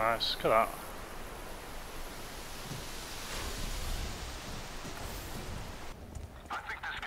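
Water rushes down a waterfall.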